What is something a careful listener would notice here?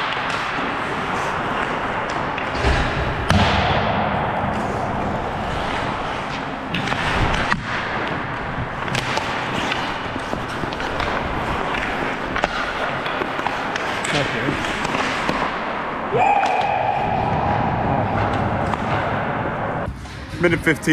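Skates scrape and hiss on ice close by.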